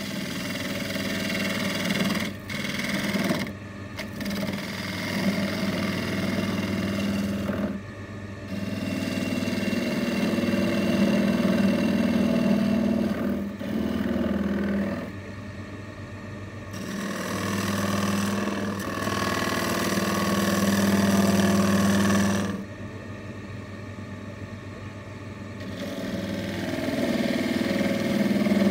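A gouge scrapes and rasps against spinning wood, coming and going in bursts.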